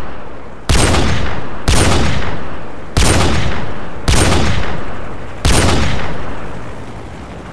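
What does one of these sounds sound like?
A rifle fires five loud shots, each echoing away.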